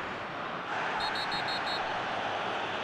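A referee's whistle blows several short blasts.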